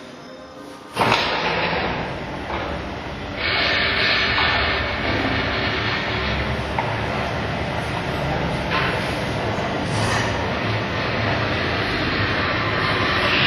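A garage door opener motor hums loudly.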